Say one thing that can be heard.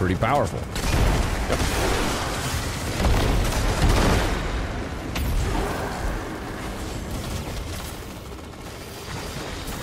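Gunfire and explosions boom from a video game.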